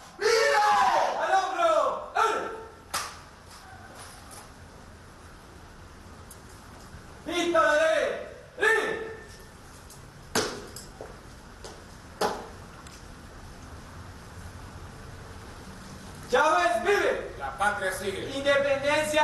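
A man shouts military commands loudly.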